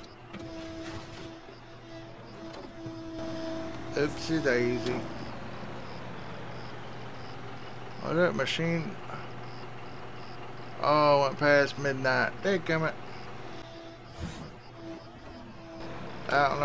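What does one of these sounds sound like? A diesel backhoe loader engine hums.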